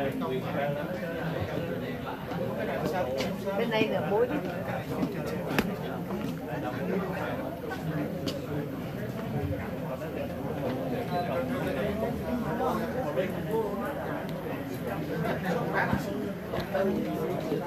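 Equipment clicks and clatters on a table.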